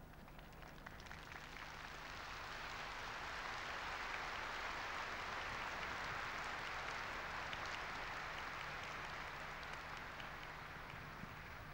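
A large crowd applauds outdoors, swelling and then slowly easing.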